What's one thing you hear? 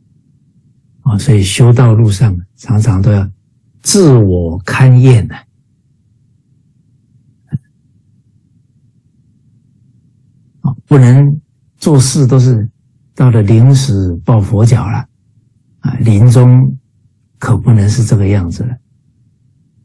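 A middle-aged man speaks calmly and warmly into a microphone over an online call.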